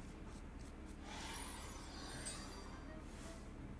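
A magical shimmering chime rings out and fades.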